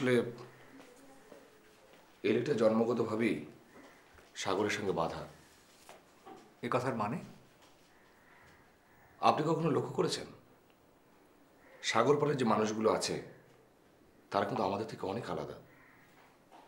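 Two men talk tensely in turns, close by.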